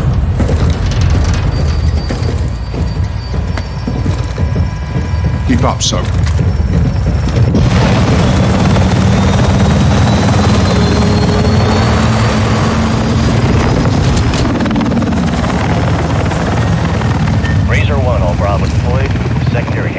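A helicopter's rotors thump and roar steadily.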